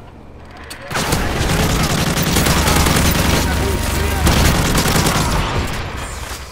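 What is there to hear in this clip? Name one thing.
An automatic rifle fires rapid bursts.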